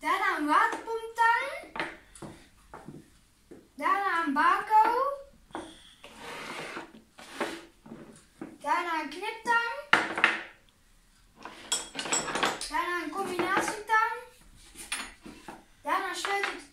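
A boy speaks calmly and close by, with pauses.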